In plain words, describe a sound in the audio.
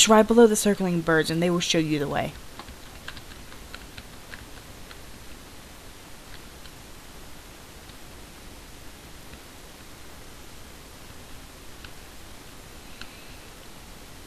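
A horse's hooves thud along a dirt path.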